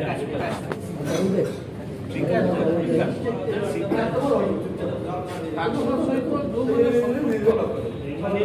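A middle-aged man speaks into microphones close by, with animation.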